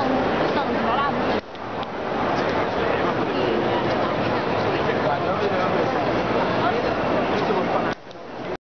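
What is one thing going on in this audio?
A crowd of people chatters all around in a large echoing arcade.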